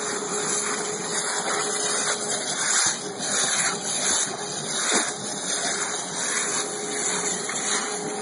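Water rushes and splashes steadily over a metal grate.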